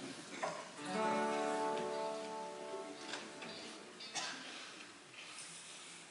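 An acoustic guitar is strummed softly.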